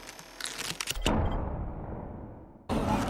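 A game's completion chime rings out and fades.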